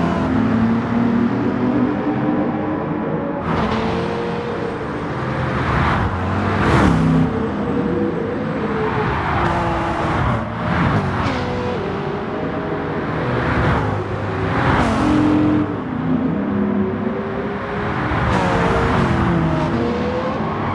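Racing car engines roar and change pitch as the cars speed past.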